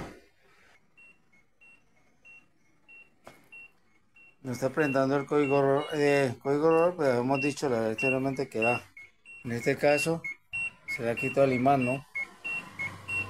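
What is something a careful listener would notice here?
A washing machine beeps repeatedly at an even pace.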